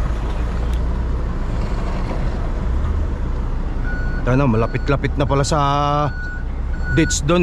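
A truck engine rumbles low and steady from inside the cab.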